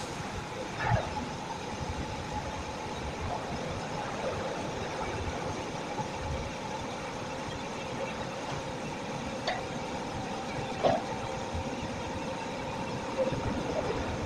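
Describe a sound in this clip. Coiled metal wire rattles and clinks as it is handled.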